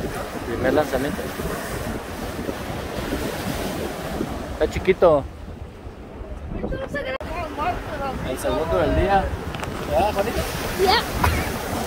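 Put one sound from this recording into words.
Waves break on rocks.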